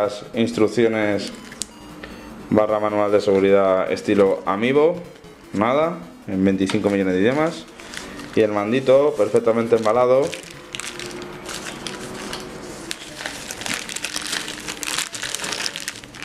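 Plastic wrapping crinkles as it is handled.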